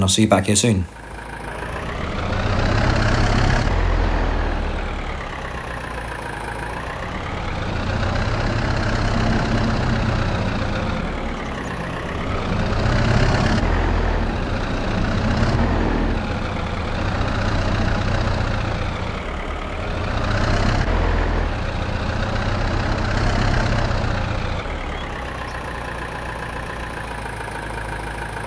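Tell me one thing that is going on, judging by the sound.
A tractor engine rumbles steadily, rising and falling in pitch as it drives.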